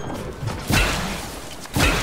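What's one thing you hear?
A pickaxe swings and strikes.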